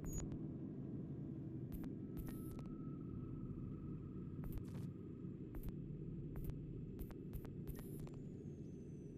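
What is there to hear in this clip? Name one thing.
Short soft menu clicks sound now and then as selections change.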